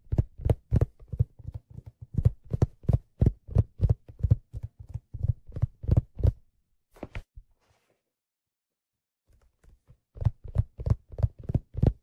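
Fingers tap and knock on a hollow object close to a microphone.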